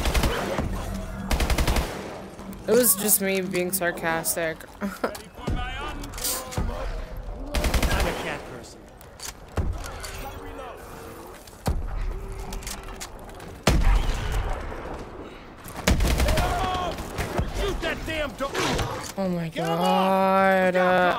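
Rapid gunfire bursts out in loud, sharp volleys.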